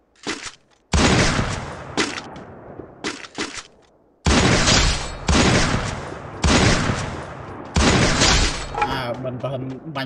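Sniper rifle shots crack loudly, one after another.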